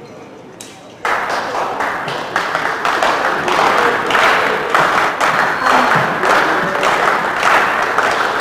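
A small crowd cheers and shouts in a large echoing hall.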